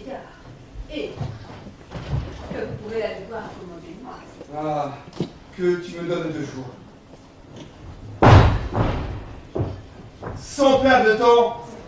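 A man speaks theatrically on a stage.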